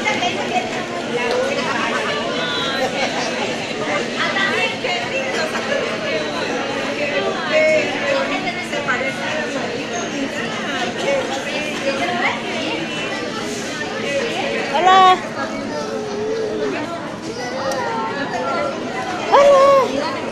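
Many people chatter and talk all around in a busy, noisy room.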